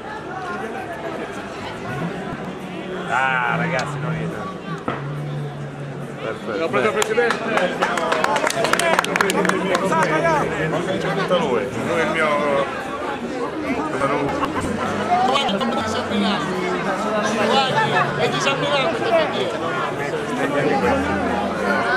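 A man talks close by amid the crowd.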